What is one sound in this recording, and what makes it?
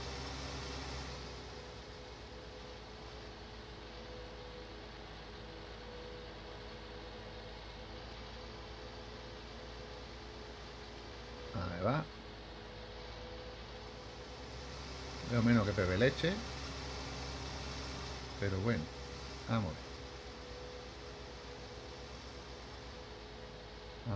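A tractor engine hums steadily while driving.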